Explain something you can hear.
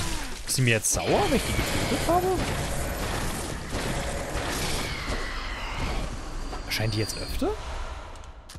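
A ghostly creature wails with rising and falling cries.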